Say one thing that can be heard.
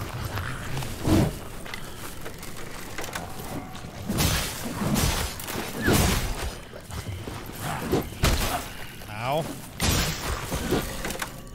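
Blades swing and strike with sharp impacts.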